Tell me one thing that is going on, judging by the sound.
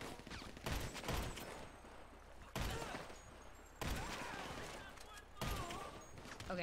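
Rifle shots crack at intervals.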